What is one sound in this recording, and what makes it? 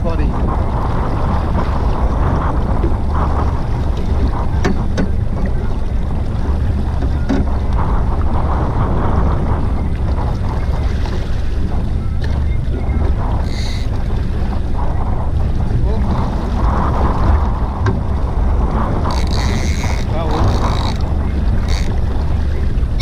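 Wind blows strongly across an open sea.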